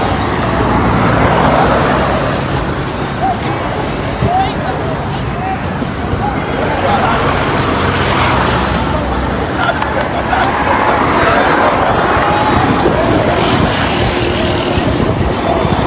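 A large crowd shouts and jeers in the distance, outdoors.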